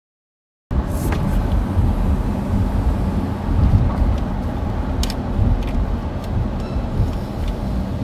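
A car engine hums low and steady from inside a moving car.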